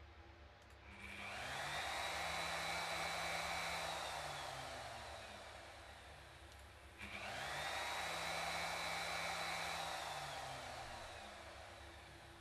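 A router motor spins up to a high whine, then winds down.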